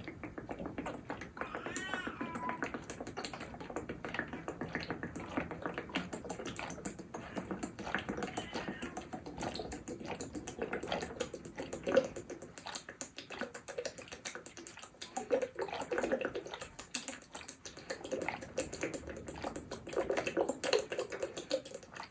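A young woman gulps a drink loudly from a bottle.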